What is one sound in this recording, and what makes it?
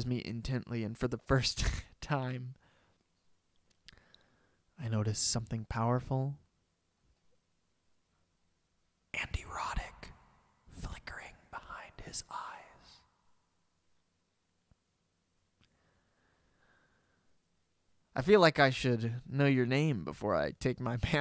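A young man speaks close into a microphone in short bursts, with pauses between.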